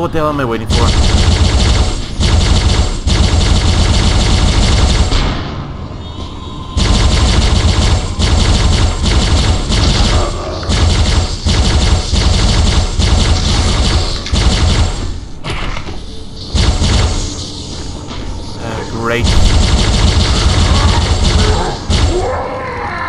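A plasma gun fires rapid electronic bursts.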